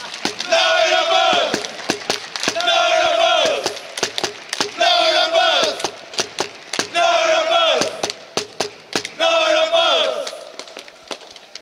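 Hands slap and clap in short sharp bursts.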